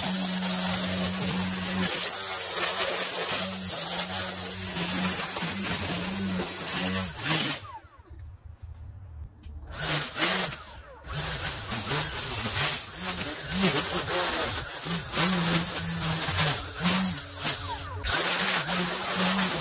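A string trimmer line swishes through tall grass.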